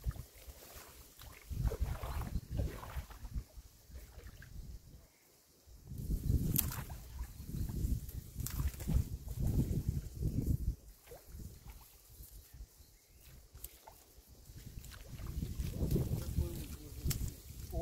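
Water splashes and sloshes as a man wades through shallow water.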